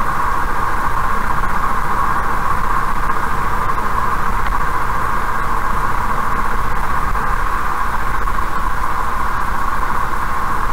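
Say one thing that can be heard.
A car drives steadily along a highway, its tyres humming on the road.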